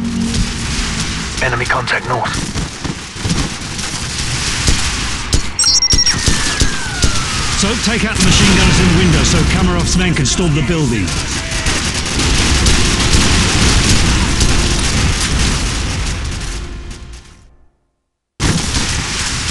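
Distant gunfire and explosions rumble in a battle.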